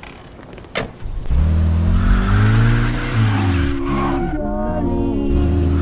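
A car engine starts and pulls away.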